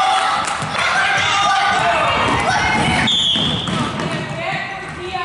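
Children shout and cheer in a large echoing gym.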